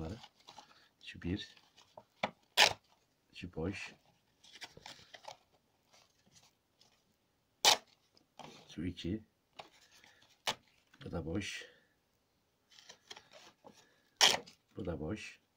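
Paper cards drop onto a wooden table with light taps.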